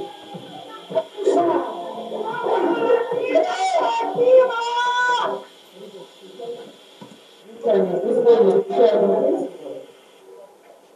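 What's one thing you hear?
Several adults talk loudly over one another, heard through an online call.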